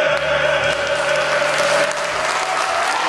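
Several men sing together in harmony.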